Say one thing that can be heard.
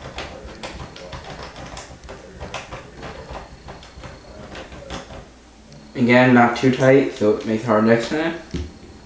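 Fingers tap and rub against a plastic case close by.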